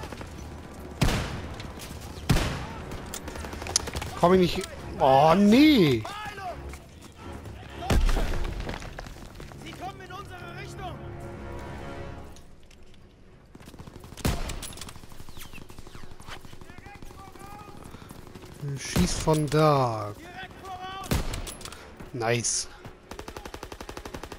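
Gunshots crack in an exchange of fire.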